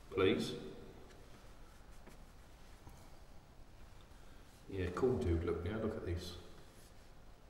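A man speaks calmly and quietly into a close microphone.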